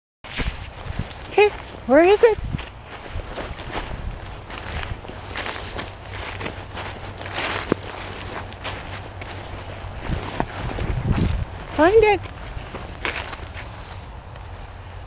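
Dry leaves rustle underfoot.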